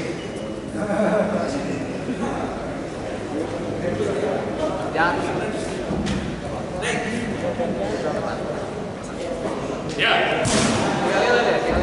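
A man calls out commands loudly.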